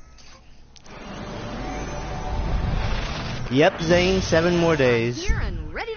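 A magical burst of light shimmers and sparkles.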